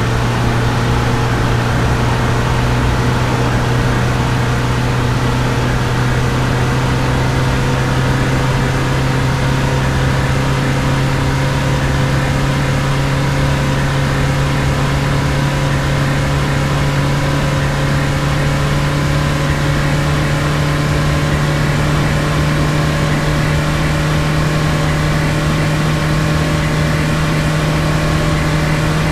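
A truck engine hums steadily and slowly rises in pitch as it speeds up.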